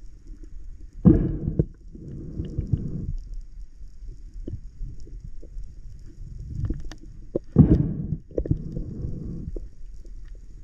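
A diver breathes out through a regulator underwater, with bursts of bubbles rumbling.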